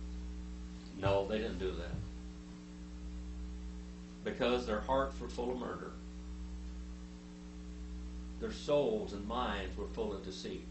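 An older man speaks slowly and calmly into a microphone, with pauses.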